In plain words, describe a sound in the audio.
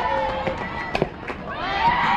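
A bat cracks against a softball.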